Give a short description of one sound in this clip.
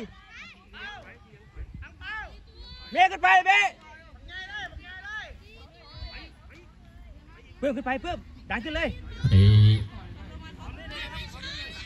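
Young players shout and call to each other outdoors on an open field.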